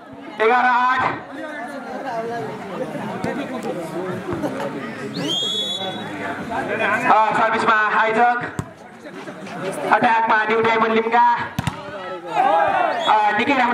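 Young men shout loudly to each other during play.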